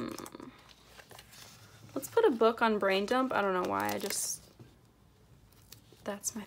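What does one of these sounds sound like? A stiff sheet of paper rustles and flaps as it is handled.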